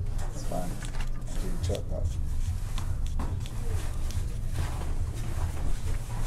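A razor scrapes lightly through a beard.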